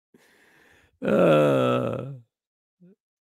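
A middle-aged man laughs into a microphone.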